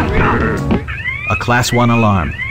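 An electronic alarm beeps rapidly in rising chirps.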